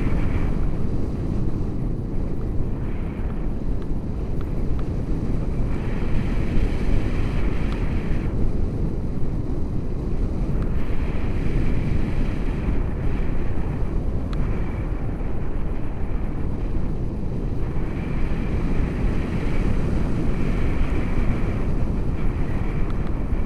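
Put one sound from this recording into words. Wind roars and buffets loudly against a microphone outdoors.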